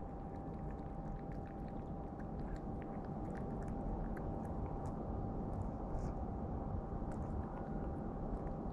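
A cat laps and chews food from a dish close by.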